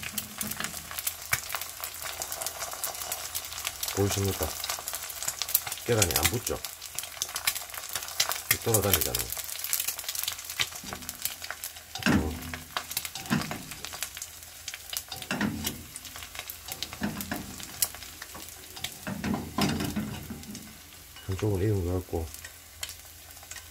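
Hot oil sizzles and crackles under a frying egg.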